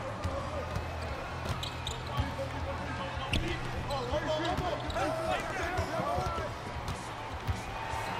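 A basketball thumps as it is dribbled on the court.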